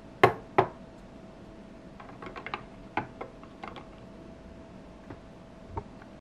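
Plastic toy pieces click and clack as a hand sets them in place.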